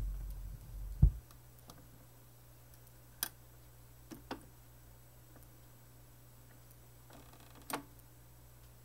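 A turntable's tonearm lifts and returns with mechanical clicks and clunks.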